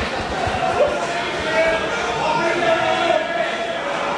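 A man announces through a loudspeaker.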